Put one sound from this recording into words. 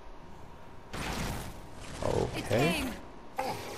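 A heavy metal machine lands with a loud clanging crash.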